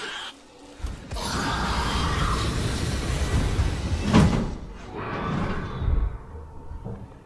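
A loud explosion bursts and flames roar, then fade.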